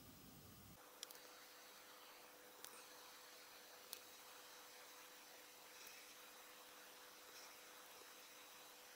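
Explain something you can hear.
A thin stick taps lightly in a paint lid.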